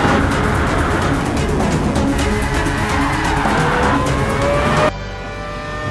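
Racing car engines roar and rev at high speed.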